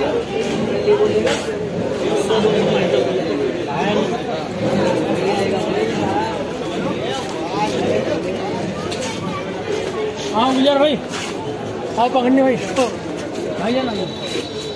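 Footsteps shuffle on paving.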